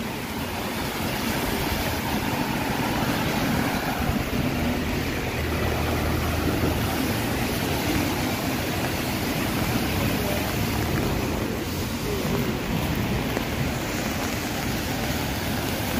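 Heavy rain pours steadily onto a wet street outdoors.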